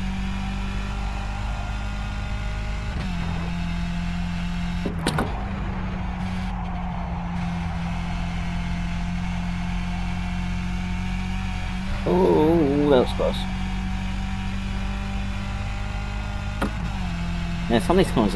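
A racing car engine drones at high speed, its pitch shifting with gear changes.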